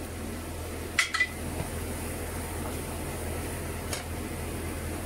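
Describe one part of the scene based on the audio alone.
A spatula scrapes and taps against a frying pan.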